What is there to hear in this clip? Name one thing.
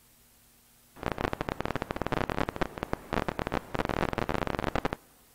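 Electronic music plays loudly.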